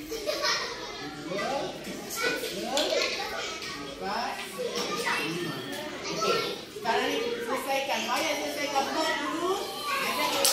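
A man talks calmly to children close by.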